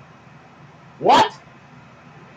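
A young man exclaims loudly close to a microphone.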